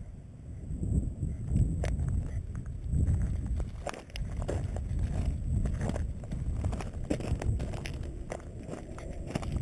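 Footsteps crunch on loose gravel and stones.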